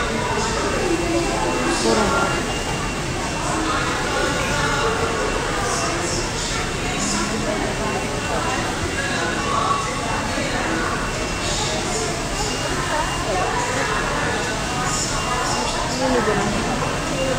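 Electric hair clippers buzz steadily up close.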